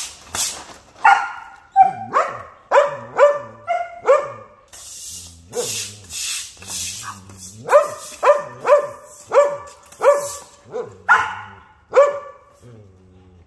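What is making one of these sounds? A dog barks excitedly.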